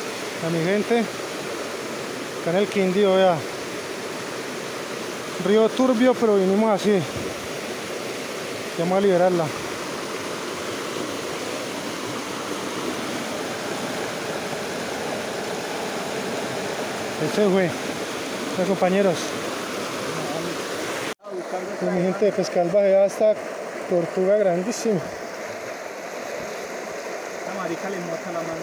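A stream rushes and splashes over rocks close by.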